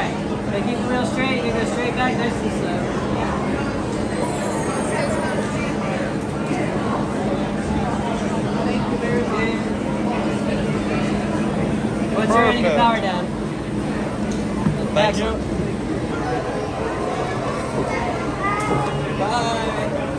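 A young boy talks excitedly.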